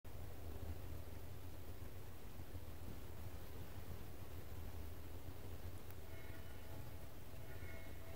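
Small birds splash in a shallow puddle.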